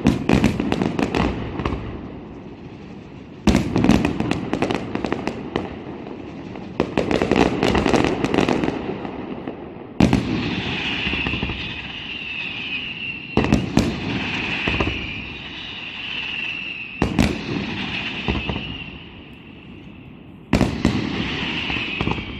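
Fireworks crackle and fizz in rapid bursts.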